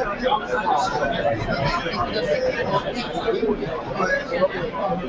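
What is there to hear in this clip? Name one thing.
A man speaks steadily to an audience, heard through a microphone.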